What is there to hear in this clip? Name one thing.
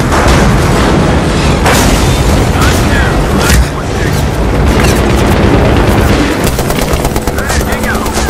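Explosions rumble and boom nearby.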